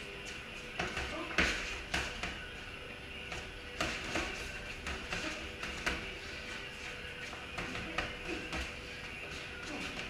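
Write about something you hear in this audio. Boxing gloves thud against pads in quick bursts.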